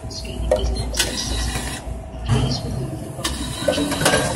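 A plastic bottle rattles and clunks as it drops into a machine.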